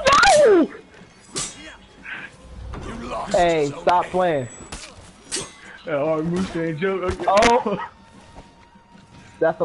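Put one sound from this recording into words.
Metal swords clash and clang in a fight.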